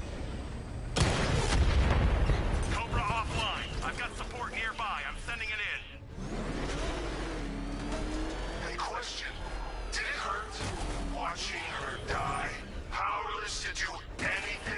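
Gunfire and explosions burst loudly.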